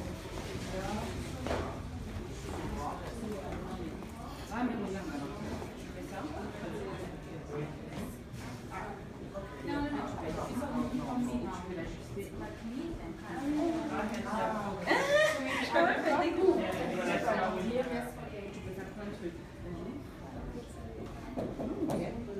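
Several women talk with one another close by.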